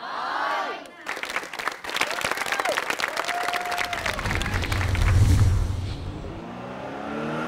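An audience of children claps and cheers.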